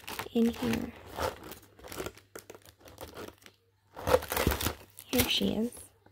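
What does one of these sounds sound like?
A plastic sleeve crinkles and rustles as paper slides in and out of it.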